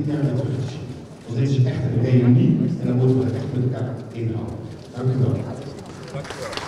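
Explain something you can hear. A man speaks calmly over a loudspeaker in a large echoing hall.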